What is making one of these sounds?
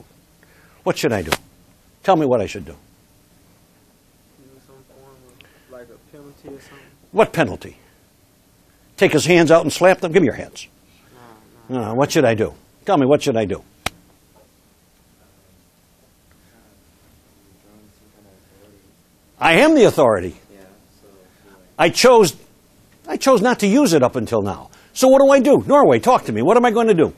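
An elderly man lectures with animation, in bursts with pauses.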